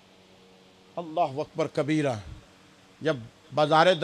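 A man speaks with feeling into a microphone.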